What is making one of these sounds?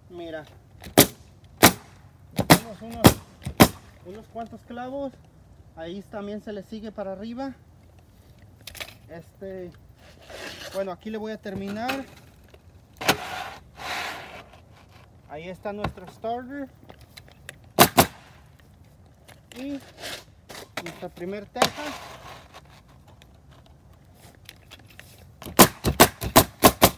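A pneumatic nail gun fires nails into roof shingles with sharp bangs.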